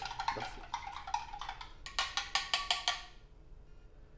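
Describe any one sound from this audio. A spoon clinks against a glass while stirring.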